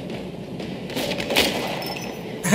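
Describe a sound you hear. A gun fires a sharp shot.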